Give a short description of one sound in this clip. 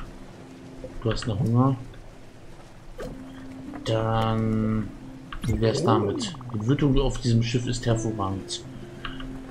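Soft game chimes and blips sound as menus open.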